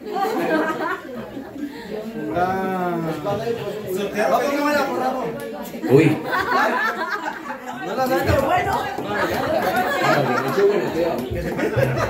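A group of women and men talk and laugh together in a lively crowd nearby.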